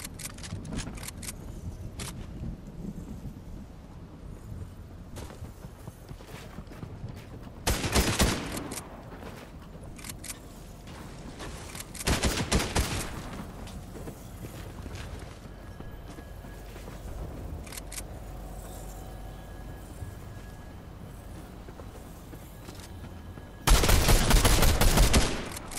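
Footsteps thud on wooden planks.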